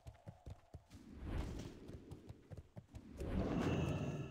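A deep magical whoosh swells and rumbles.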